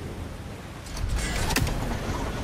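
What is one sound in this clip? An axe whooshes through the air.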